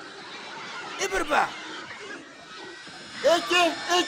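A second man shouts excitedly.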